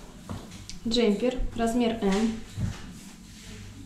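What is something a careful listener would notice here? Fabric rustles softly as clothing is smoothed flat by hand.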